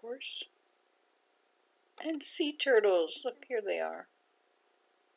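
An elderly woman speaks calmly through a microphone.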